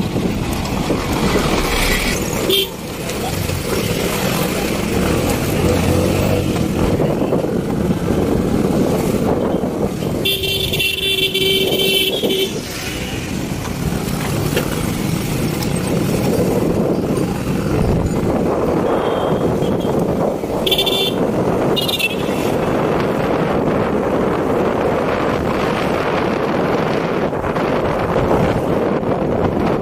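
Car and truck engines rumble past nearby in busy street traffic.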